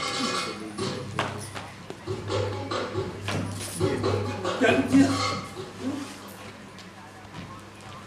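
A woman speaks with feeling on a stage, heard from across a hall.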